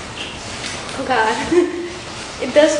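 A young woman laughs with delight close by.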